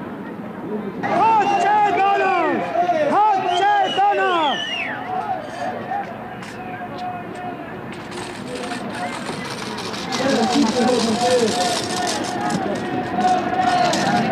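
Men sing together loudly outdoors.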